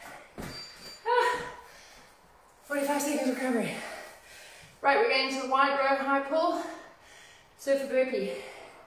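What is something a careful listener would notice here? A woman speaks with animation into a nearby microphone.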